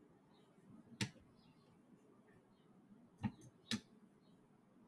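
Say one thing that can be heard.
Plastic parts click and clack as hands handle them up close.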